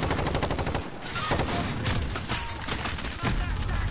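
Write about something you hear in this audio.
A bolt-action sniper rifle fires a sharp shot.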